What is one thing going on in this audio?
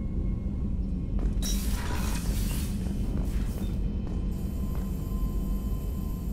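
Footsteps tread on a hard metal floor.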